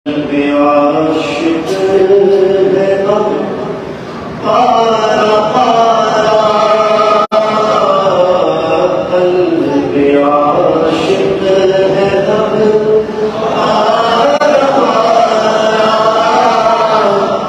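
A man sings a devotional chant into a microphone, heard through loudspeakers in an echoing hall.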